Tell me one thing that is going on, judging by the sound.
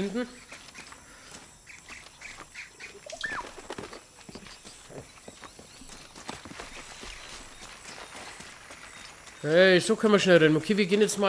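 Footsteps run over soft ground and leaves.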